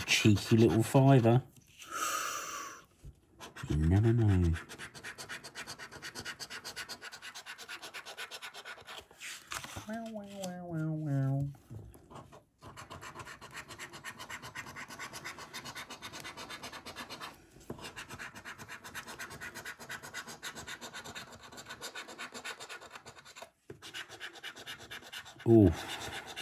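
A coin scratches steadily across a scratch card.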